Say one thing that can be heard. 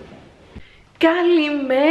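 A young woman speaks loudly and excitedly close by.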